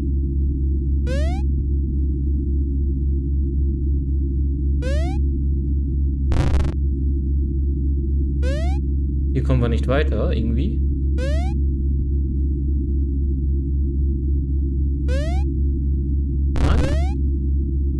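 A game makes short rising chirps as a character jumps.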